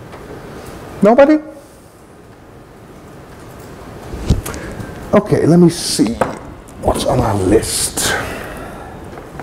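A man speaks into a microphone in a hall, with pauses.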